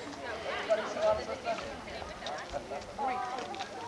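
A crowd of young people chatters nearby.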